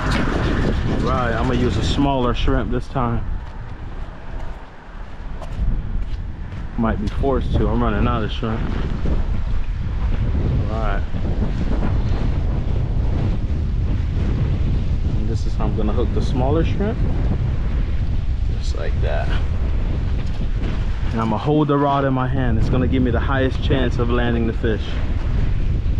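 Wind blows steadily and rumbles outdoors.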